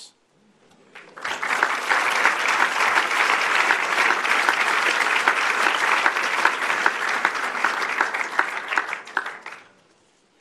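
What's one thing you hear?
An audience applauds steadily, then the clapping dies away.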